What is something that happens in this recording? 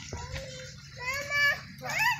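A young child shouts excitedly nearby.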